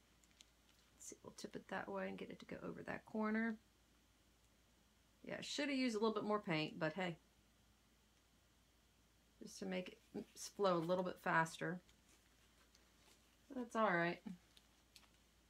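A woman talks calmly close by, in short bursts.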